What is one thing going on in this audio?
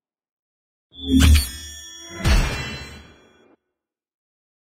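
A booming victory sting plays with a low thud.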